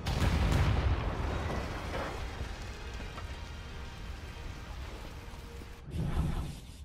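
Fire crackles and rumbles after a blast.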